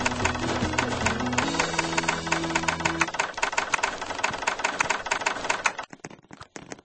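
A spinning blade grinds with a loud, rapid rattle.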